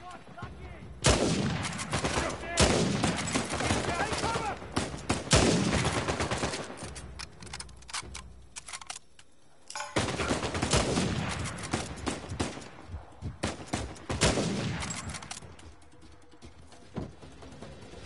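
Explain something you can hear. Loud rifle shots boom one at a time, each followed by a long echoing rumble.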